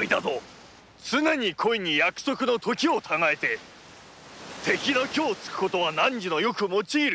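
A middle-aged man speaks gruffly and firmly.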